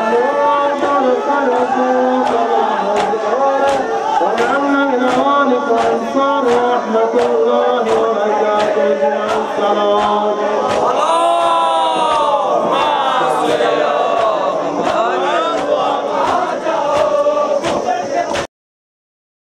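A man chants loudly through a microphone in a steady rhythm.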